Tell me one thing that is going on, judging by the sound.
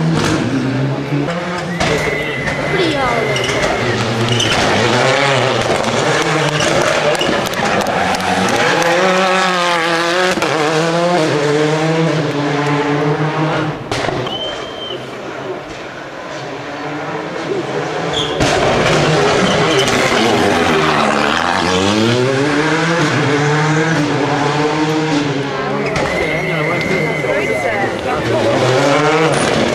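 Rally car engines rev hard and roar past, changing gear.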